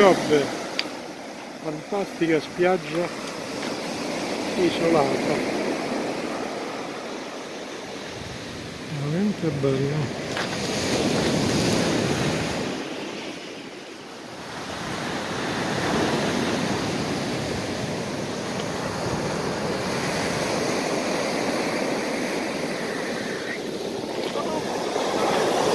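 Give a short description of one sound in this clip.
Waves wash onto a pebble shore and surge up the beach.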